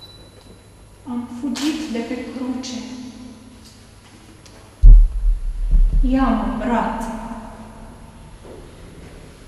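A woman recites verse dramatically in an echoing hall.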